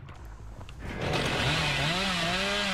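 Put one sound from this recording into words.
A chainsaw revs.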